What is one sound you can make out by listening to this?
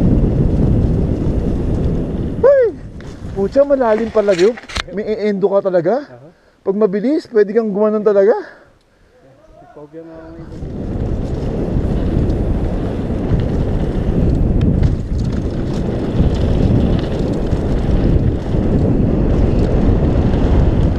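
Wind rushes loudly past a rider's helmet.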